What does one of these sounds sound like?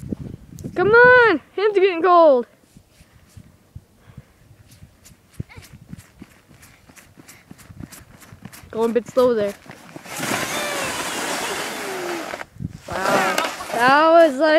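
A young girl squeals and shouts excitedly nearby.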